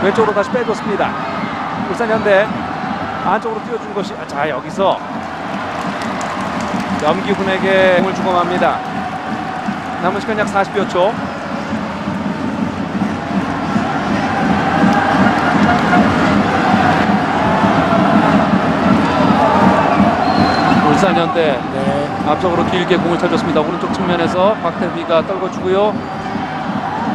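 A large stadium crowd murmurs and chants, swelling for a while.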